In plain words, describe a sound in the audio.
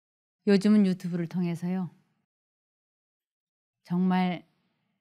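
An elderly woman speaks calmly into a microphone, heard through a loudspeaker.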